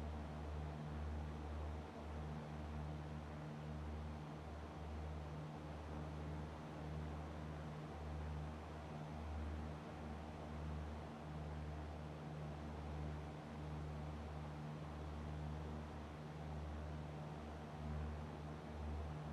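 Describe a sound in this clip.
A small propeller plane's engine drones steadily, throbbing slightly.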